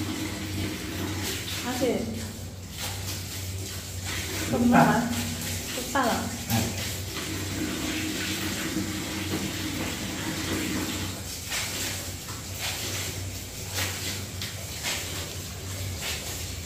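Wet laundry is scrubbed and sloshed by hand in a plastic tub of water.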